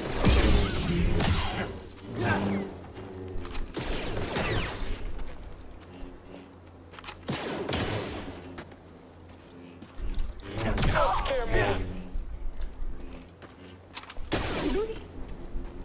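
Lightsabers hum and clash in sharp bursts.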